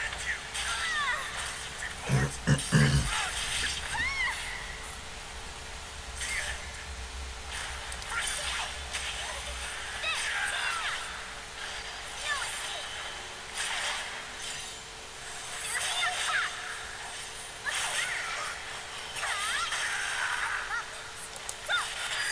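Swords clash and strike with sharp metallic hits.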